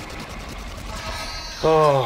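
A magical portal hums and crackles with electricity.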